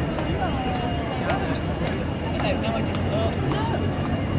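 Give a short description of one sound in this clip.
Buses rumble by in traffic.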